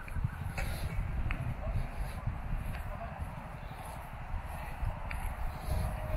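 A golf putter taps a ball softly.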